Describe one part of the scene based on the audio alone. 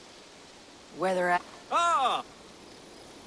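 A young woman speaks briefly and calmly.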